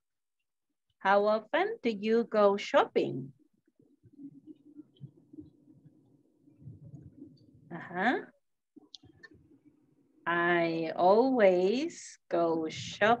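A woman speaks clearly through an online call.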